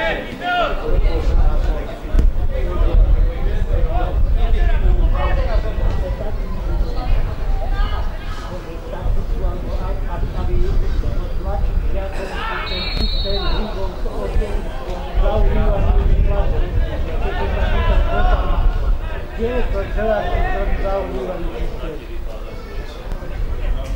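Young men shout to each other across an open sports field in the distance.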